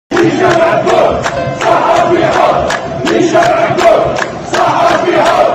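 A crowd claps hands in rhythm.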